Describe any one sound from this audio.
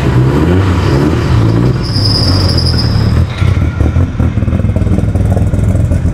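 A car drives slowly past outdoors.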